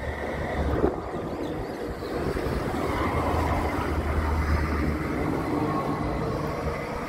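A tram rumbles past close by, its motor whining.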